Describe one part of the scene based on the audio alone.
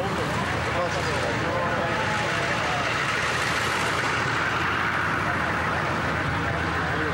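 A large truck engine rumbles nearby.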